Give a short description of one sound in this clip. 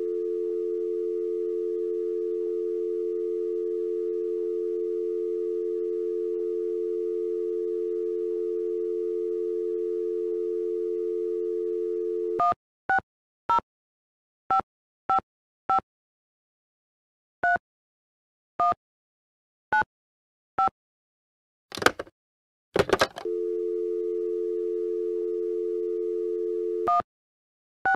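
A phone dial tone hums steadily.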